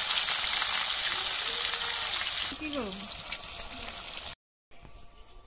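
Oil sizzles loudly in a frying pan.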